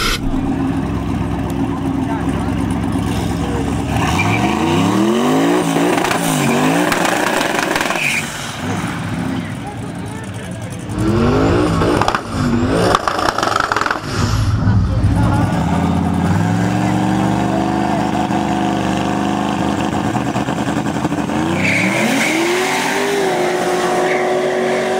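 Loud car engines idle and rumble close by.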